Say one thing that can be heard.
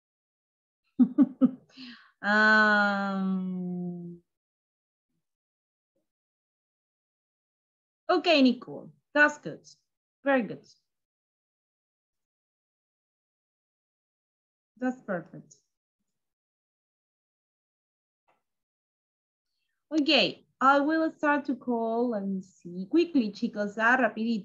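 A young woman speaks calmly, in bursts with pauses, through a computer microphone.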